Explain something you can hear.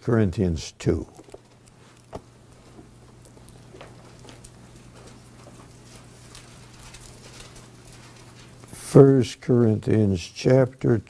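An elderly man speaks calmly into a microphone, with long pauses.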